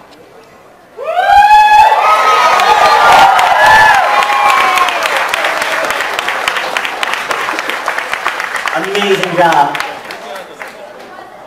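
A crowd cheers and screams loudly in a large hall.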